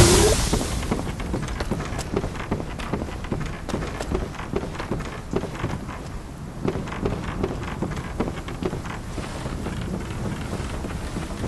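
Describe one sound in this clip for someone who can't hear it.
Footsteps thud on wooden planks at a steady pace.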